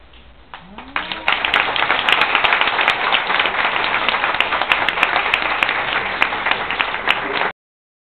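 A small band plays lively music with guitar, double bass and horn.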